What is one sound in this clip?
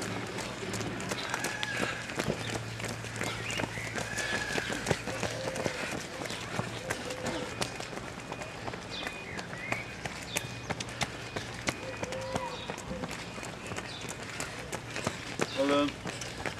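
Footsteps of runners slap on a wet path.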